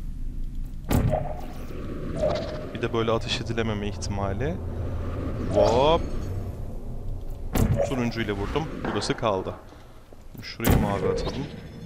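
A portal gun fires with a sharp electric zap.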